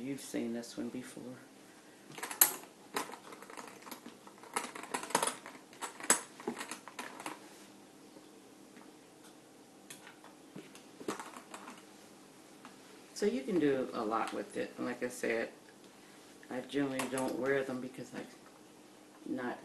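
A middle-aged woman speaks calmly and close up, as if into a microphone.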